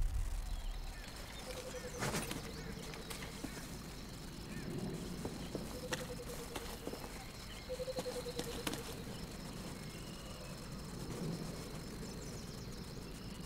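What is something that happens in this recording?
Footsteps patter quickly on grass and stone.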